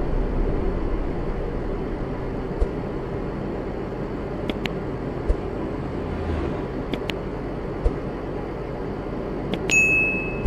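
A truck engine hums steadily with a low rumble.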